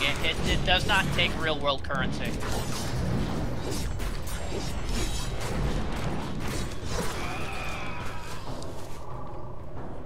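Gunshots and magic blasts crack and boom in quick bursts.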